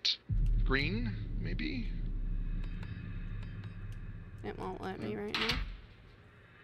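A young woman speaks with animation, close to a microphone.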